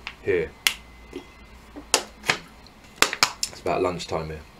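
A plastic bottle crinkles and clicks in a man's hand.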